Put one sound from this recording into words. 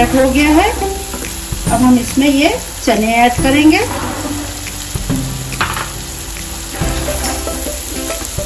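A spatula scrapes and stirs in a pan.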